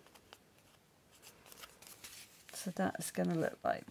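Paper crinkles and rustles softly between fingers.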